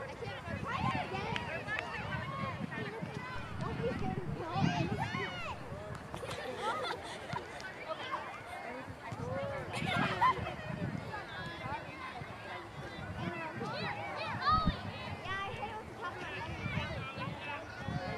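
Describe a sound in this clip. A small crowd of spectators chatters outdoors.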